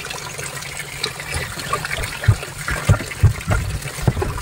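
A hand splashes and sloshes in water.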